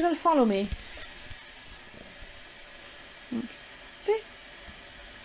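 A small dog whines and yelps in short, rising and falling cries nearby.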